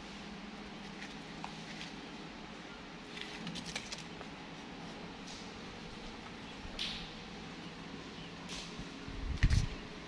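Plastic wrappers crinkle and rustle close by.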